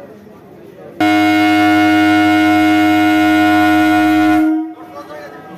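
A train horn blares loudly and steadily nearby.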